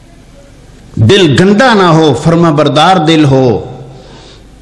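A middle-aged man chants loudly into a microphone, heard through a loudspeaker with echo.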